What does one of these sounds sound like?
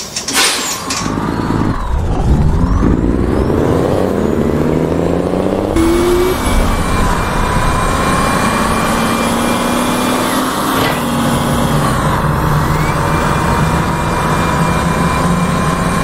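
A bus engine revs and rises in pitch as the bus pulls away.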